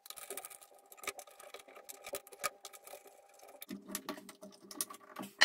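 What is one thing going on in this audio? Hands click and knock small parts against a wooden frame.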